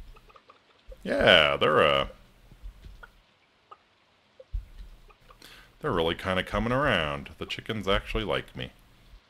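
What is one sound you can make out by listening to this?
Chickens cluck loudly.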